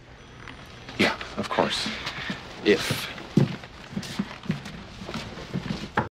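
Several men talk and murmur nearby.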